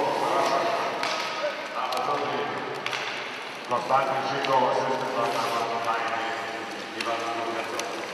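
Sled blades scrape across the ice.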